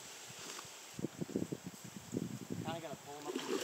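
A man wades through shallow water.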